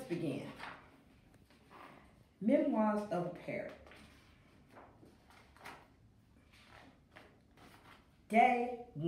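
A woman reads aloud with expression, close by.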